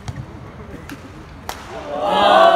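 A shuttlecock is struck sharply by rackets in a large echoing hall.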